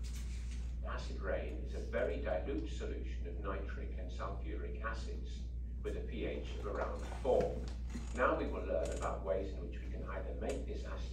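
A woman speaks calmly in a room.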